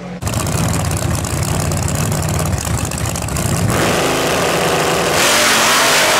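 A turbocharged V8 drag car idles with a lumpy rumble.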